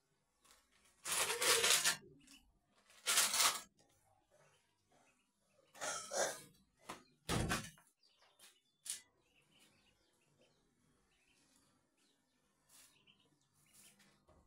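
Ducklings peep shrilly in short bursts close by.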